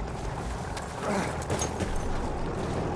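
An explosion bursts nearby with a heavy boom.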